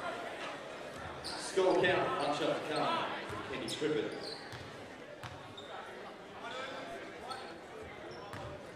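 Spectators chatter and call out in an echoing indoor hall.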